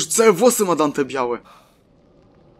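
A young man cries out in pain up close.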